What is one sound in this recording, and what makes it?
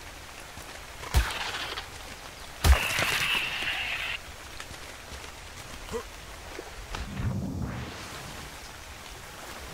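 An otter splashes as it swims through water.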